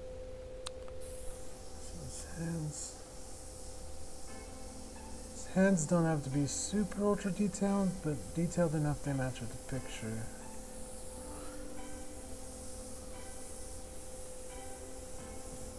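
An airbrush hisses softly in short bursts.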